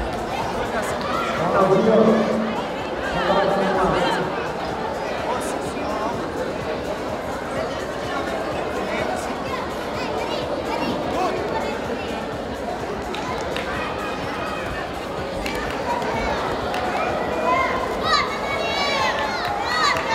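A large crowd chatters and shouts in an echoing hall.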